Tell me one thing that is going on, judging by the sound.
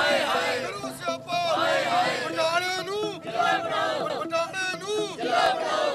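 A crowd of men and women chants slogans loudly outdoors.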